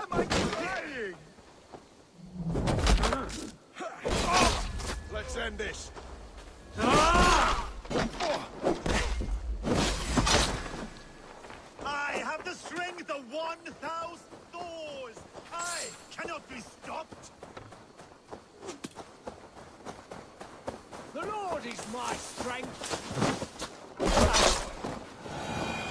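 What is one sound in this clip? Axes clash and thud against bodies in a scuffle.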